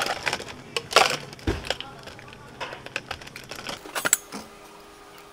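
Ice cubes clatter into plastic cups.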